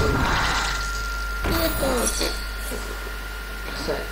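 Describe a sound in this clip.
A magical chime sounds as a spell is revealed.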